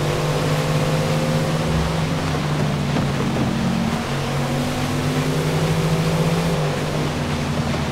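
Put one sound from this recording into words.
A car engine roars steadily at high speed, dipping in pitch as it shifts gears.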